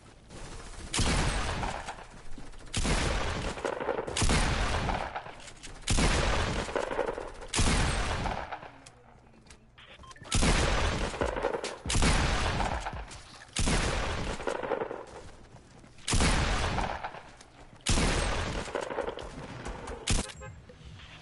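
Loud gunshots boom one after another, each with a long rolling tail.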